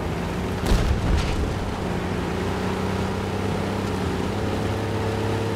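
Tank treads clatter over a dirt track.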